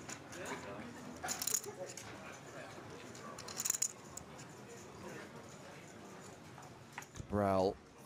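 Poker chips click together as a player handles a stack.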